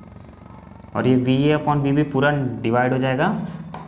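A man speaks calmly, as if explaining.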